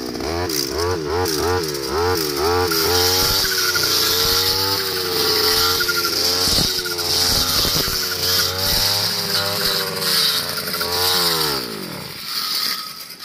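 A two-stroke brush cutter revs up and down as it cuts through grass.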